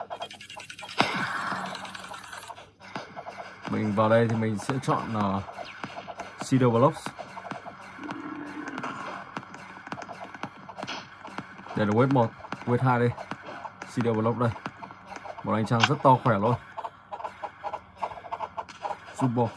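Video game music and effects play from a tablet's small speaker.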